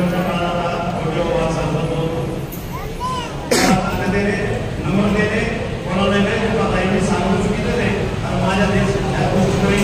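An elderly man speaks with animation into a microphone.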